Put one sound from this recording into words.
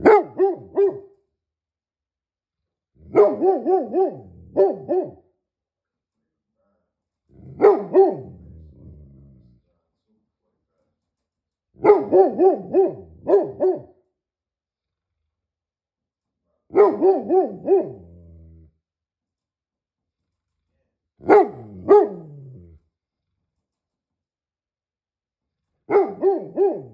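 A large dog barks in deep, booming bursts close by, with pauses between them.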